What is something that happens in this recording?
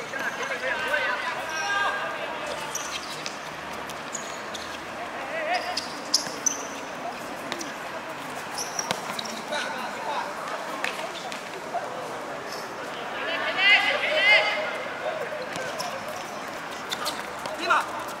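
Sneakers squeak on the hard court.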